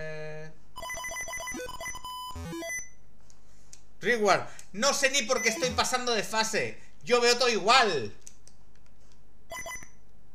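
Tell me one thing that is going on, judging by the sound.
Electronic video game beeps and chirps play in quick bursts.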